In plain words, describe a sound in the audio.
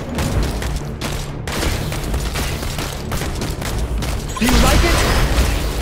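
Electronic battle effects of quick hits and blasts play in rapid bursts.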